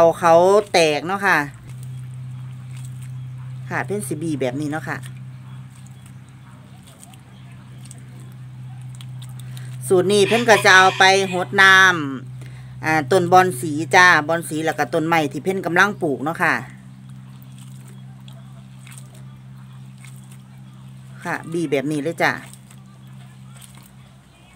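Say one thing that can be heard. A gloved hand squishes and squeezes wet rice in water.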